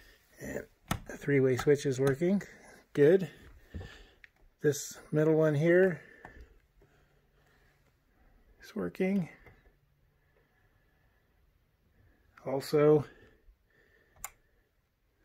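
A wall light switch clicks.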